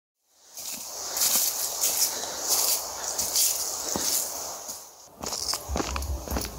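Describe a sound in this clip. Footsteps crunch on dry leaves and loose stones outdoors.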